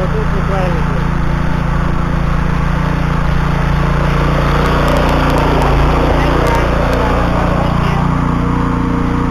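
A small petrol engine runs loudly with a steady, rattling drone.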